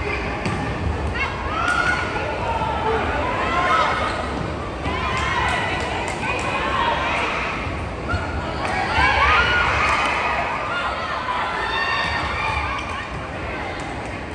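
Young women players shout and call out on court.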